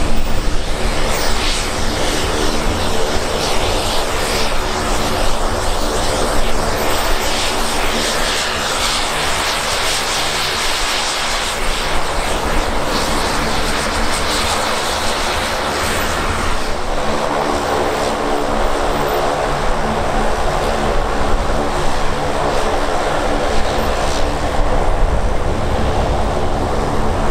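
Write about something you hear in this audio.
Propeller engines drone loudly and steadily nearby.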